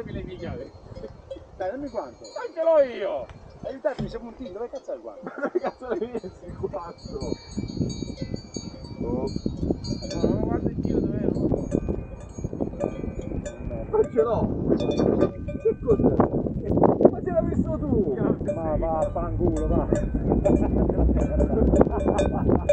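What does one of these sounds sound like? Several men talk with animation close by, outdoors.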